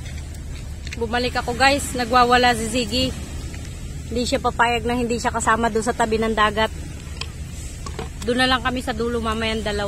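A woman talks loudly nearby.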